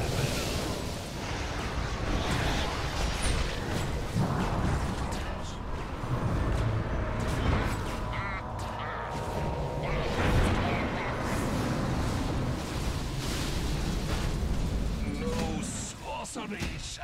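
Magical blasts and explosions crackle and boom in a busy fight.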